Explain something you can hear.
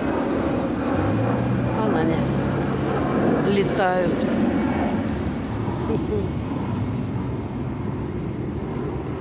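A jet plane drones overhead.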